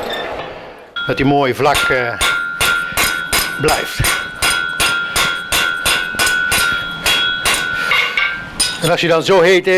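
A hammer rings sharply on an anvil in quick, regular blows.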